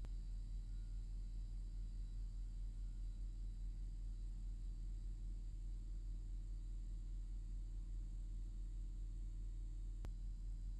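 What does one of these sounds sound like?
Fluorescent lights hum steadily with a low buzz.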